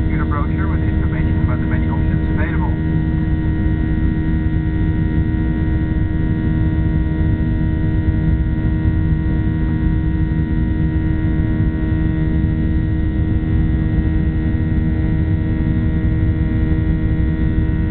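A jet engine roars steadily with a constant low hum from close by.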